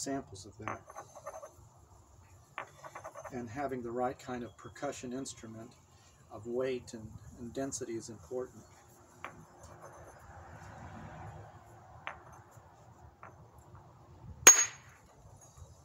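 Stones knock and scrape against each other.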